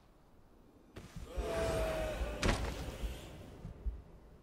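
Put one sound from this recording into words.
A body falls and thuds heavily.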